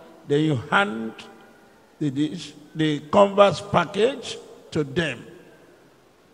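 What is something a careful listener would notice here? A man speaks into a microphone in short, forceful phrases.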